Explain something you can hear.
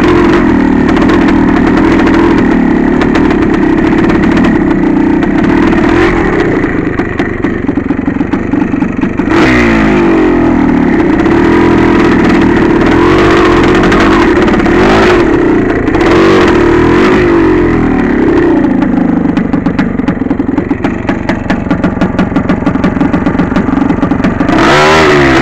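A dirt bike engine drones loudly close by, revving up and down.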